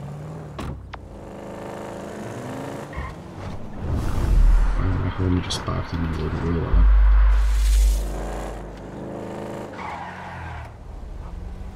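A car engine revs and roars.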